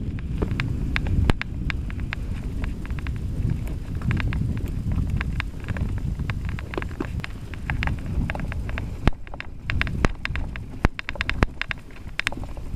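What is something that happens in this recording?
A bicycle rattles and clicks over bumps.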